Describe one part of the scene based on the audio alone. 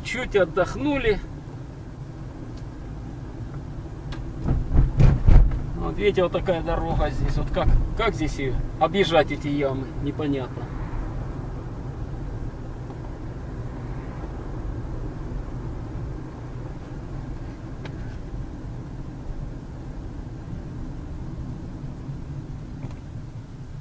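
A car engine hums steadily as tyres roll over the road.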